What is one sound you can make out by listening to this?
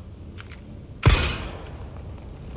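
A gunshot bangs sharply and echoes.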